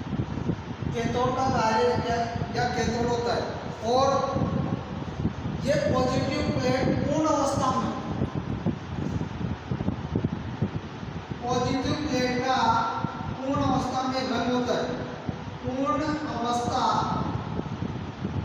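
A young man speaks into a clip-on microphone.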